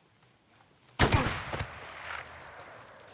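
A heavy blow strikes a body with a loud thud.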